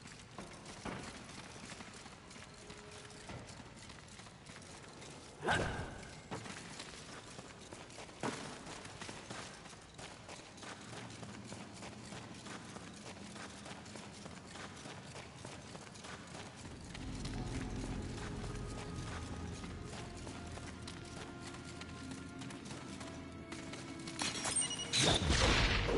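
Footsteps crunch over dirt and stone.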